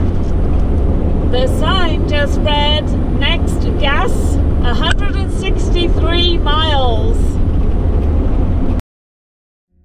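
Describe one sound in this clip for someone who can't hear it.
A car drives along a road with a steady rumble of tyres and wind.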